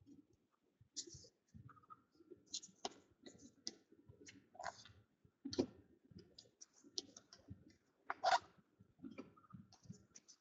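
Trading cards flick and slide against each other in a hand.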